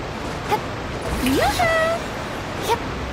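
A sparkling magical chime rings out with a rising whoosh.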